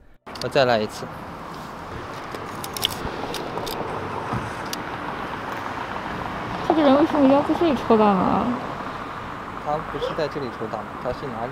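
A young man speaks casually close by.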